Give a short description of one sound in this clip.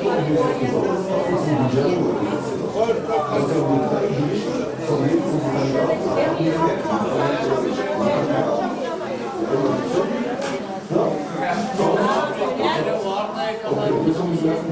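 A crowd of men and women chatter and talk over one another nearby.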